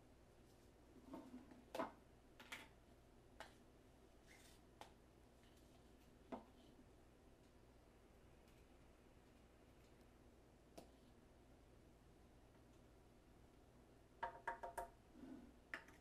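Bottles and cups knock and clink on a counter.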